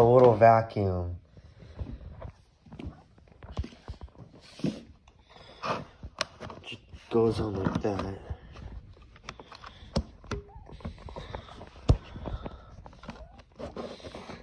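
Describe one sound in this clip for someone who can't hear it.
Hard plastic parts click and knock together as they are fitted.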